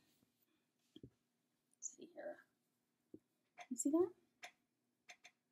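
Fabric rustles as a woman handles a piece of cloth.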